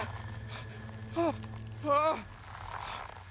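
A man cries out in alarm.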